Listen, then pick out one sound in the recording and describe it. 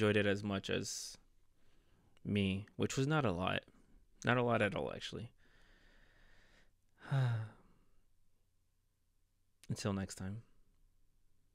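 A young man talks with animation close to a microphone, in short bursts with pauses.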